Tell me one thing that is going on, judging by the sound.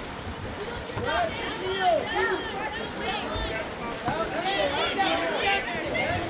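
Spectators shout and cheer from the stands.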